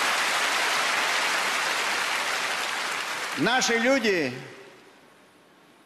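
An audience laughs and applauds loudly, then fades.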